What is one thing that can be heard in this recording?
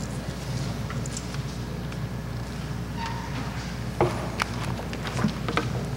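Heels click on a hard floor as a woman walks.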